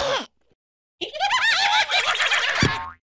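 A high-pitched cartoon voice squeals and warbles excitedly.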